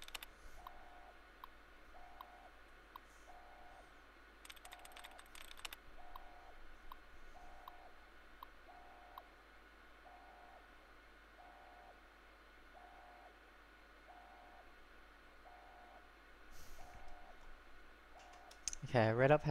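Short electronic beeps repeat at an even pace.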